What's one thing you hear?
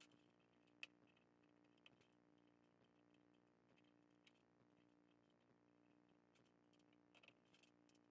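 Plastic clicks as small bits are pressed into a holder.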